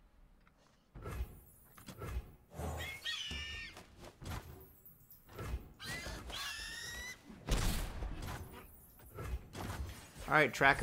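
Card game sound effects whoosh and chime.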